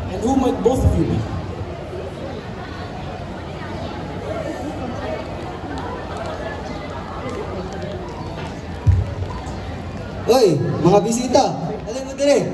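Children speak loudly outdoors, heard from a distance.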